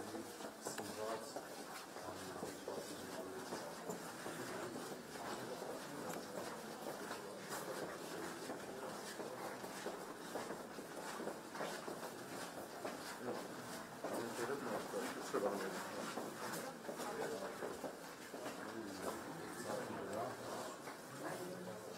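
Footsteps shuffle along a hard floor.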